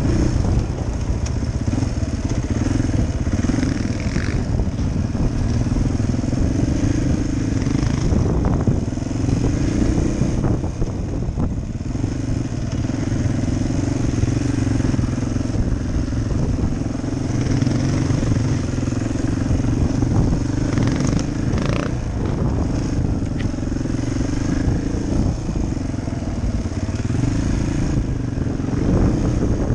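Wind buffets a helmet microphone.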